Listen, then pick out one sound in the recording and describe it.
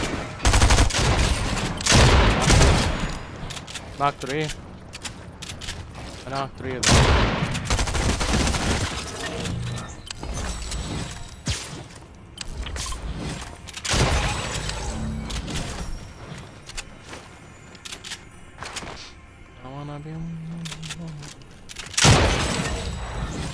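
Loud shotgun blasts boom with short echoes.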